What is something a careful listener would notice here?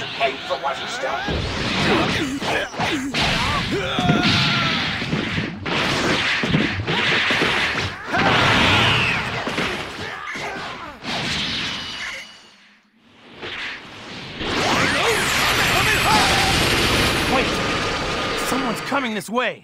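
Punches and kicks thud in quick bursts.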